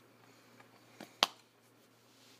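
A man snaps his fingers sharply.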